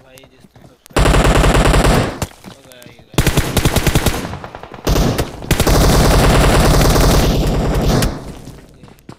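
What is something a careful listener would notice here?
Rapid automatic gunfire rattles loudly in bursts.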